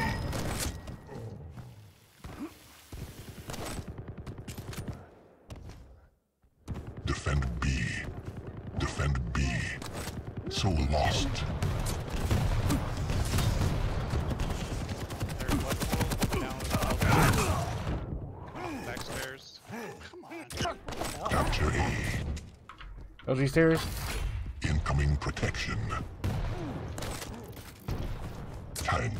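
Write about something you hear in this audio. Gunfire and blasts from a video game ring out rapidly.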